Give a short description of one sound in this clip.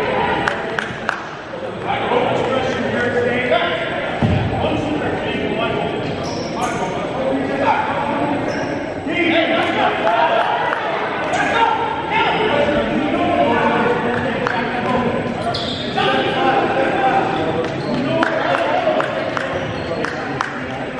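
Young men call out, their voices echoing through a large gym.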